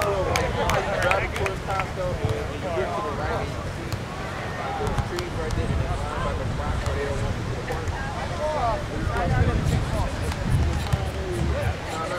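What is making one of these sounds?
A volleyball is struck by hands with dull thuds.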